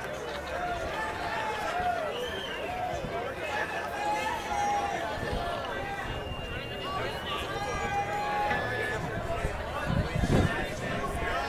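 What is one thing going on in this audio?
A large crowd of young men and women chatters and calls out outdoors.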